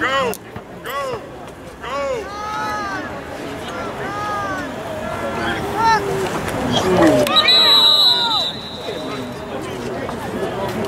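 Young men shout loudly outdoors.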